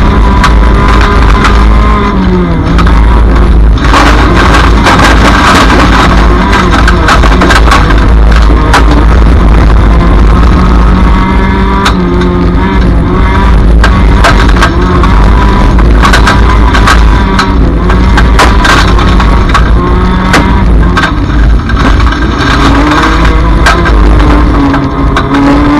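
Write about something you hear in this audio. Gravel and stones clatter against the car's underside.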